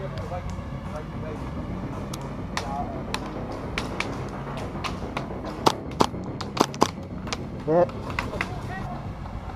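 Paintball guns fire in sharp pops close by and in the distance.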